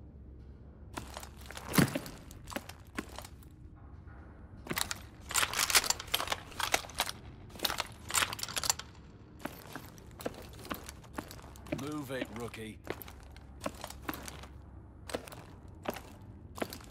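Metal clicks and clacks as a rifle is handled and swapped.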